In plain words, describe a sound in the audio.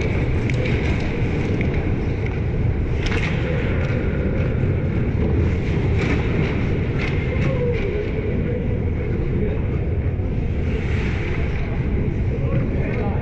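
Skates scrape across the ice in a large echoing arena.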